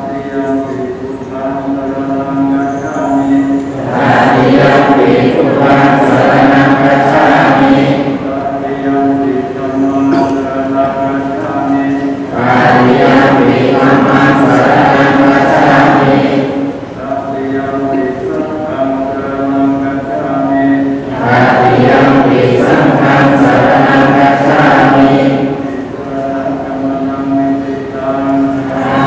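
A large crowd of men and women chants together in unison in a steady, droning rhythm, swelling louder at times.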